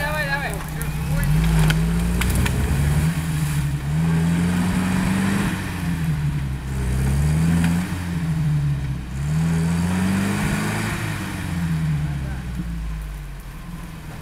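Wheels spin and churn through mud.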